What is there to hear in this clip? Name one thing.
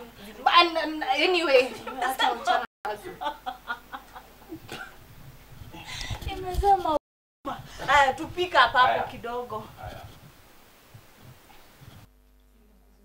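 Two young women talk and laugh together nearby.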